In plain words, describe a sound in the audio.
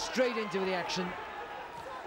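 A boxing glove lands with a thud.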